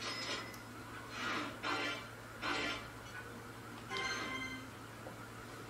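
Short electronic chimes ring out in quick bursts.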